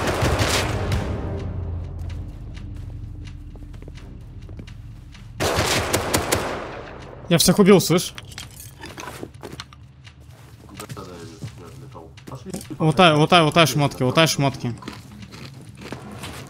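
Footsteps thud on grass and stone.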